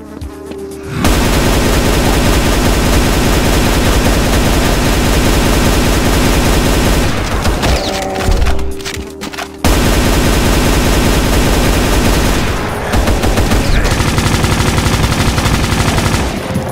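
Heavy guns fire in rapid, continuous bursts.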